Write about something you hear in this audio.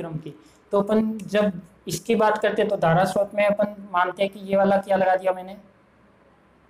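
A man speaks clearly and steadily, close by.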